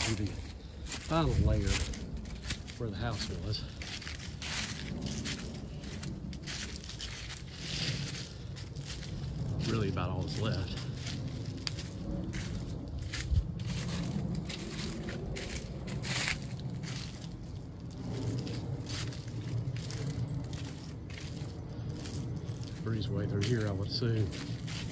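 Footsteps crunch and rustle through dry fallen leaves.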